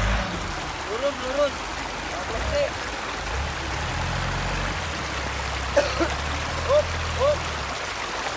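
A man calls out directions outdoors.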